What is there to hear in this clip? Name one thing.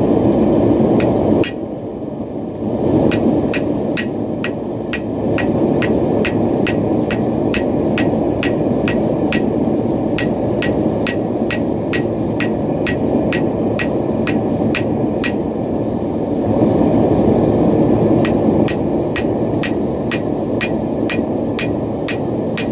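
A hammer rings sharply on an anvil in a steady rhythm.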